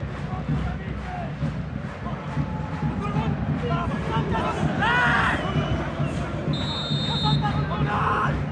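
A large stadium crowd chants and roars steadily.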